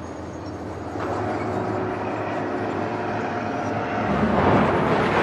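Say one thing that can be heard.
A car engine starts and idles.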